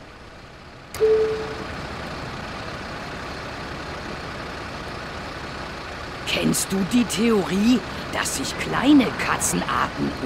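A bus engine hums steadily.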